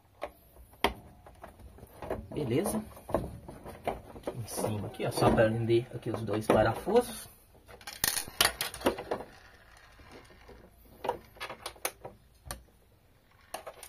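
A plastic panel clatters and knocks as it is handled.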